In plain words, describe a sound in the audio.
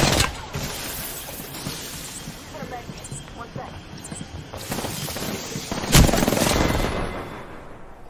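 Loud gunfire crackles and booms at close range.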